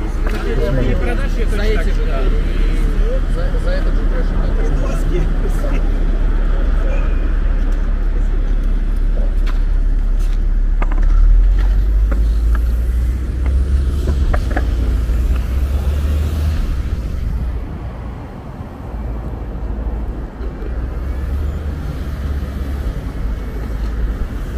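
Wind rumbles loudly across the microphone outdoors.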